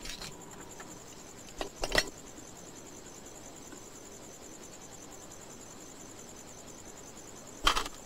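Hands tear apart dried meat.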